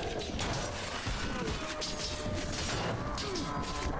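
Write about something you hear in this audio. Metal weapons clash and clang in a close fight.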